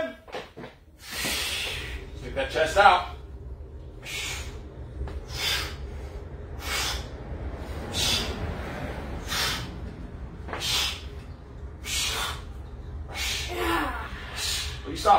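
A man breathes out hard with each dumbbell press.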